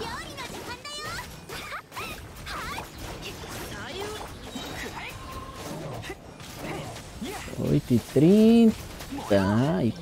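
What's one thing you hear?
Game battle effects crash and whoosh.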